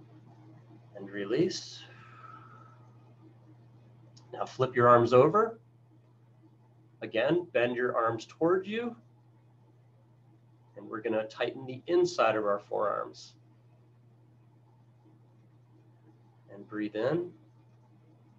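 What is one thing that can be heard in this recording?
A middle-aged man speaks calmly in short bursts over an online call.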